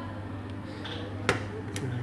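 A metal part taps against a metal caliper.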